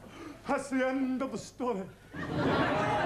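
A man speaks loudly and theatrically nearby.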